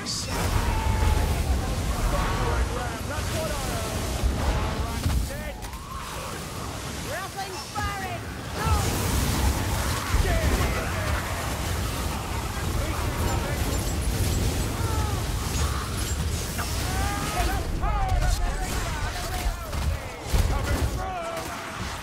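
A flamethrower roars in loud bursts.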